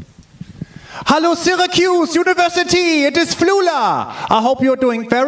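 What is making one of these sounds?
A young man sings loudly into a microphone in rapid, choppy bursts.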